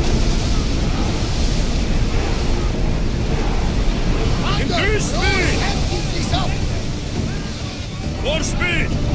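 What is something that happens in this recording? Waves rush and splash against a ship's hull.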